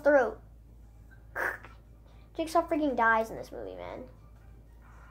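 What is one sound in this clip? A young boy speaks with animation close to the microphone.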